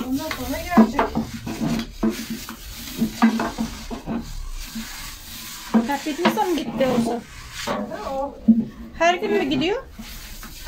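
A rolling pin rolls and taps on a wooden board.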